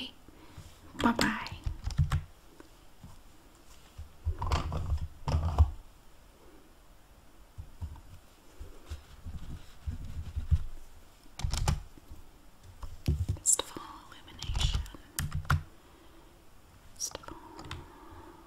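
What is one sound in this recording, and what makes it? Keys clatter as someone types on a keyboard.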